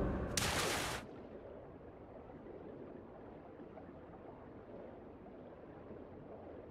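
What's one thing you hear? Water gurgles and rumbles, deep and muffled, as if heard from underwater.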